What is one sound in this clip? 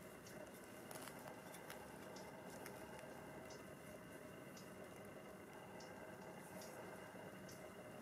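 A hand trowel scrapes and digs into soil.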